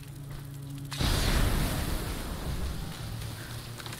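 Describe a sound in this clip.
A burst of flames roars up suddenly and then dies down.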